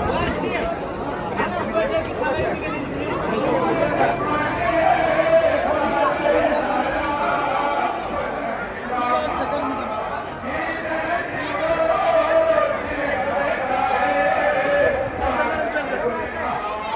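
A large crowd of men chatters and calls out all around, outdoors.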